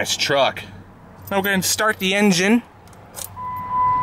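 Keys jingle in a hand.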